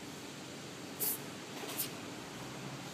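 Air hisses in short bursts from a tyre valve.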